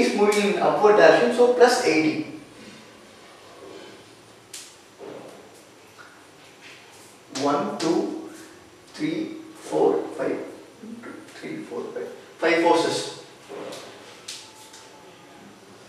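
A young man explains calmly, heard up close in a room that echoes slightly.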